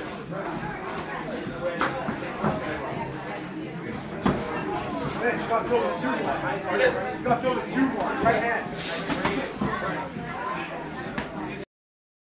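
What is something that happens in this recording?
Boxing gloves thud against each other in quick blows.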